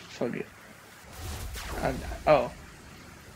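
A magical burst whooshes and rumbles.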